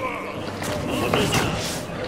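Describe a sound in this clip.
An icy blast whooshes.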